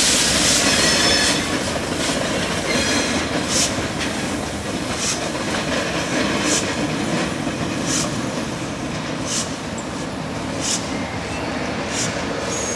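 A steam locomotive chuffs in regular puffs as it hauls a freight train.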